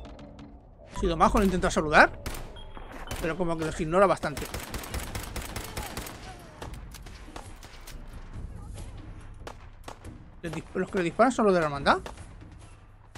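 A pistol fires several sharp shots.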